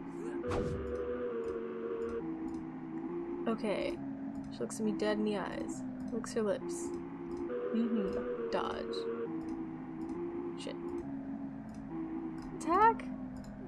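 Calm music with steady held notes plays throughout.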